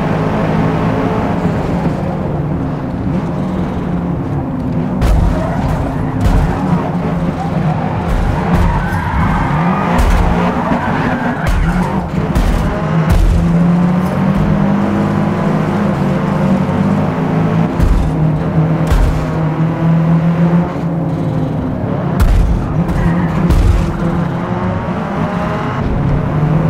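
A car engine revs and roars, shifting gears as it races.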